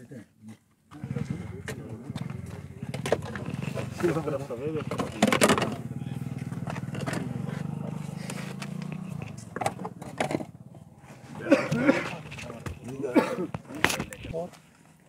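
A man rummages inside a car, rustling and knocking.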